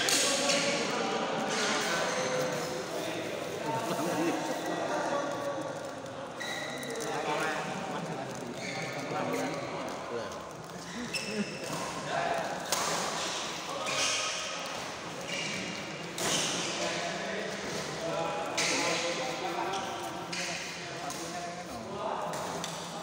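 Shuttlecocks are hit with sharp pops of rackets in a large echoing hall.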